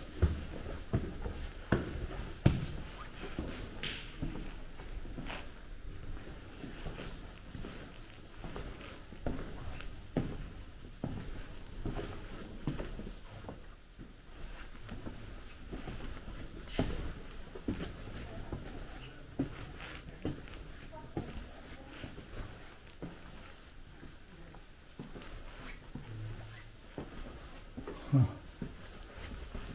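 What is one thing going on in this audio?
Footsteps crunch slowly over a gritty floor.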